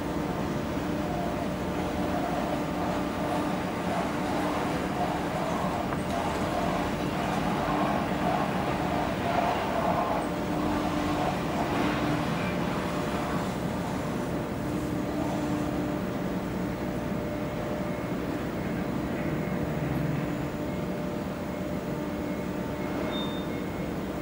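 A small boat's engine hums across the water.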